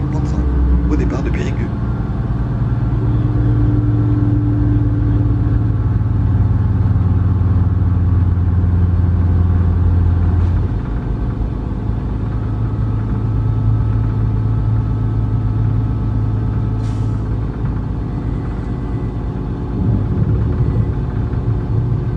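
A train hums and rumbles steadily as it pulls away and rolls along the tracks.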